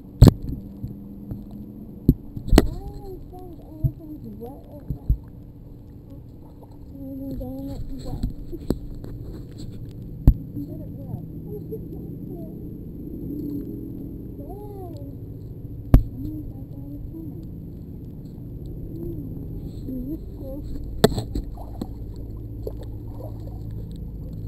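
Water laps and splashes in a pool close by.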